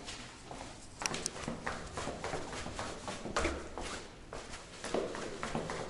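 Footsteps thud quickly on concrete stairs, with a slight echo.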